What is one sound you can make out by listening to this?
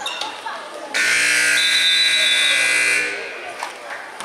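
A loud buzzer sounds steadily.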